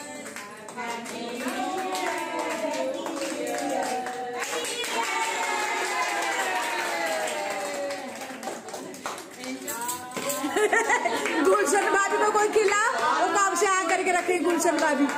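Women clap their hands in rhythm.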